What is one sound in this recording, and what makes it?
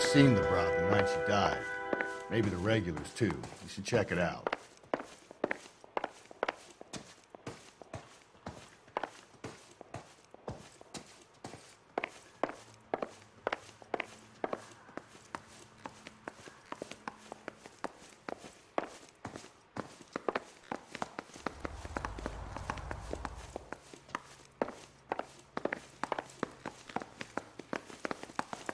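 Hard shoes tap steadily on wooden and tiled floors and stairs.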